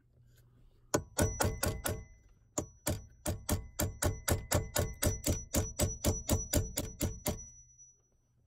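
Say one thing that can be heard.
A hammer taps metal in quick, steady blows.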